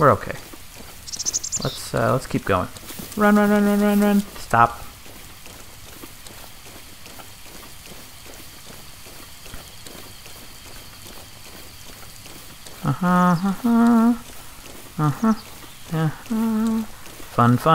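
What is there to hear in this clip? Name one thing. Rain falls steadily on grass.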